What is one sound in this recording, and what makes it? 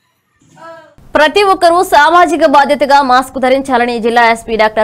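A young woman reads out the news clearly through a microphone.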